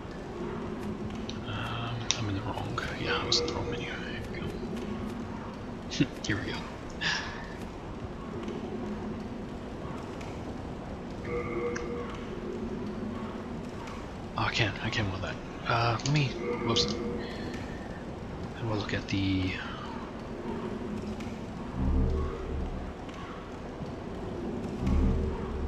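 Soft game menu clicks sound as a selection moves.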